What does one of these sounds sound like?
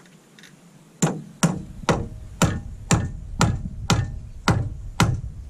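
A hammer knocks steadily on wood overhead.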